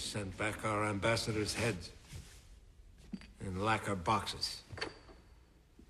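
A man speaks calmly and gravely.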